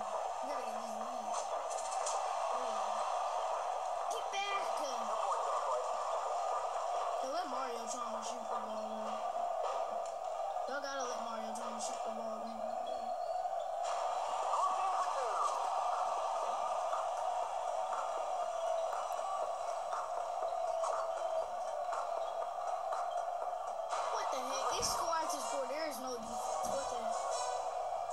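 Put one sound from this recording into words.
Game crowd noise and music play steadily from a small phone loudspeaker.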